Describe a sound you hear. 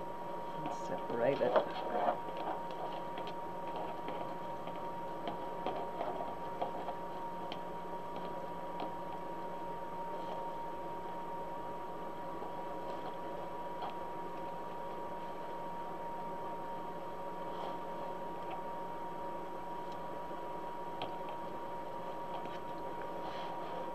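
Plastic deco mesh crinkles and rustles under hands.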